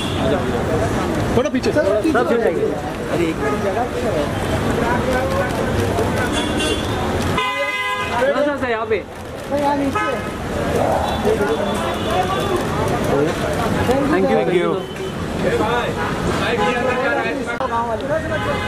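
Several men call out and talk loudly nearby.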